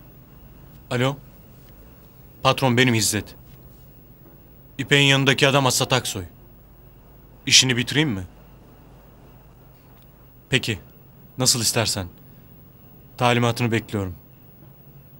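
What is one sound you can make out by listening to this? A man speaks on a phone in short, tense bursts with pauses between.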